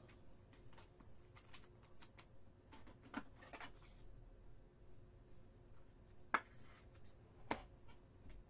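Trading cards in plastic sleeves click and rustle in hands.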